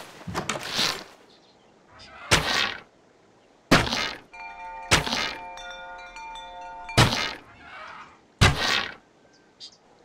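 A bow shoots arrows that whoosh away, again and again.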